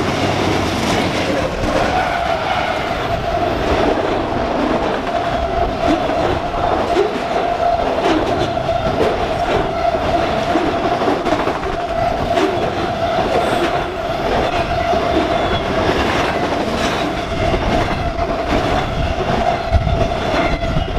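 A freight train rumbles past close by, its wheels clattering on the rails.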